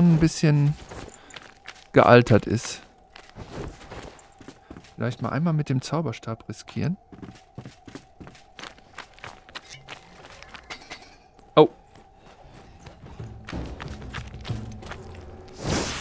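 Armoured footsteps thud on wood and stone.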